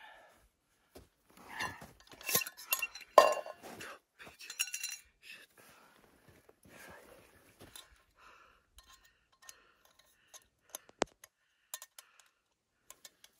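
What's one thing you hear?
Small metal gear clinks and knocks on a rock close by.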